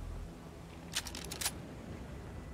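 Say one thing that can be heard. Ammunition is picked up with a quick run of metallic clicks.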